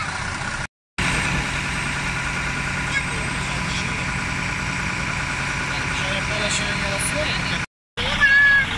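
A truck engine hums steadily nearby.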